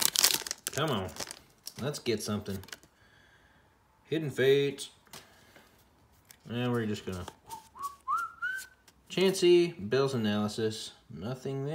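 Playing cards slide and rustle against each other.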